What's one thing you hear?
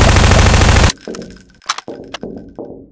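A gun's magazine clicks out and a reload rattles.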